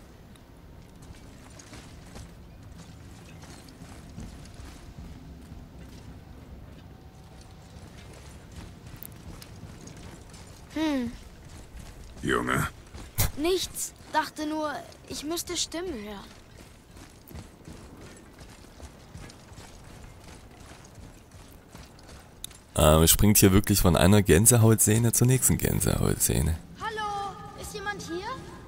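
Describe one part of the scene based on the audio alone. Heavy footsteps crunch on gravel and rock.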